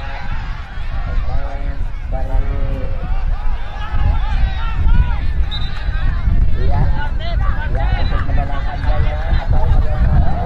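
A large crowd of spectators shouts and chatters outdoors.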